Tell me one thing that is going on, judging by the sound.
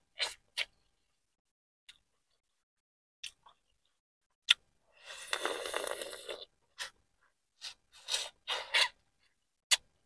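A woman crunches and chews corn on the cob close to a microphone.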